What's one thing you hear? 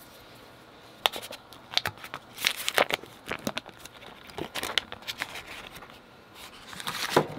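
Paper wrapping crackles.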